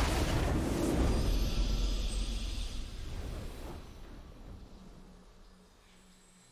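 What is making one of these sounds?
A triumphant fanfare plays and fades out.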